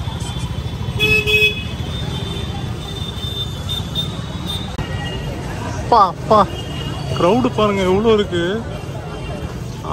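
Motorbikes rumble past on a busy street.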